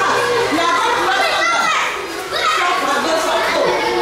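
Young children talk and chatter nearby.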